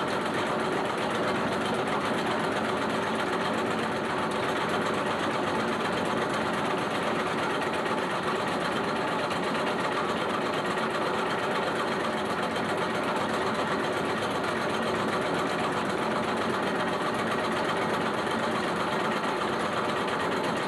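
Water mill machinery runs with a steady rumble and hum.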